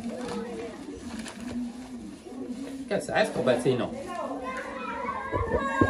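A plastic bag rustles as a man opens it.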